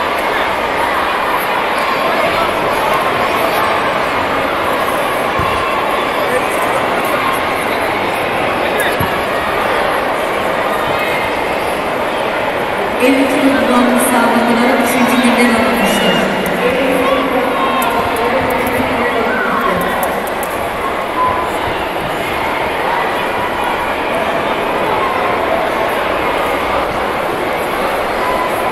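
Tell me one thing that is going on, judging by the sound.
A large crowd murmurs and chatters, echoing in a big hall.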